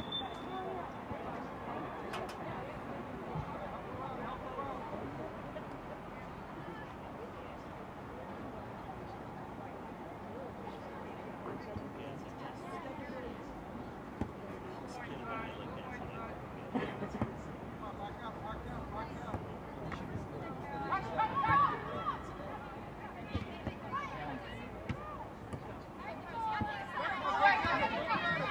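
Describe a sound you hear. Spectators cheer and shout outdoors at a distance.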